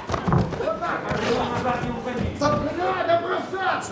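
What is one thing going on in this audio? A boxer falls heavily onto the canvas floor.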